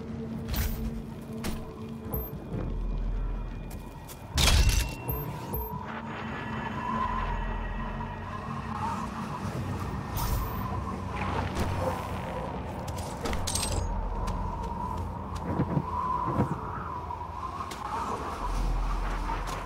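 Footsteps thud steadily on rocky ground.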